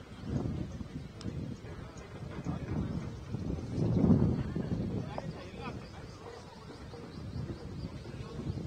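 Several men talk faintly in the distance outdoors.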